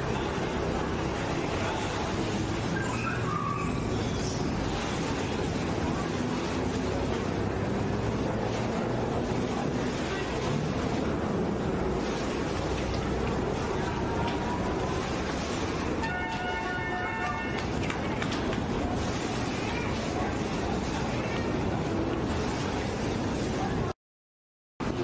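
A boat engine rumbles close by.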